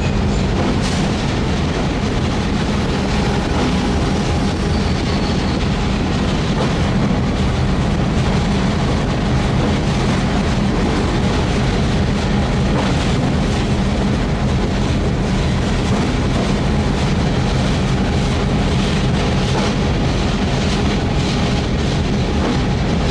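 A locomotive rolls along rails with a steady low rumble.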